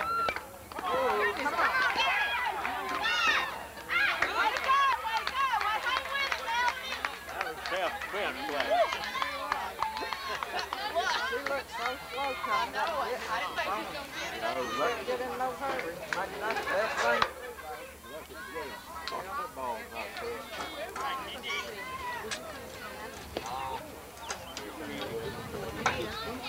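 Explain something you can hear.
Young girls shout and chatter with animation outdoors.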